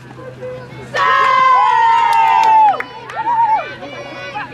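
Young women spectators shout and cheer loudly close by.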